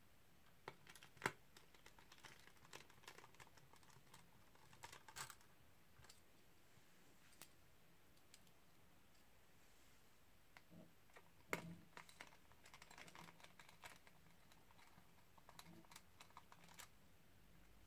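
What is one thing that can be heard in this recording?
A screwdriver clicks and taps against small metal screws.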